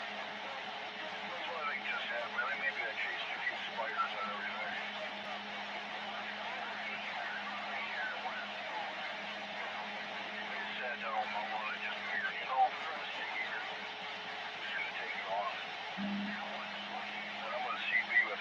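A radio receiver hisses with steady static from its loudspeaker.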